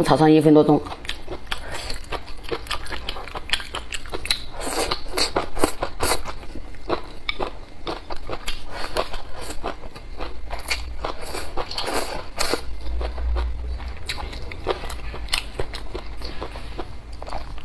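A young woman chews and smacks her lips wetly, close up.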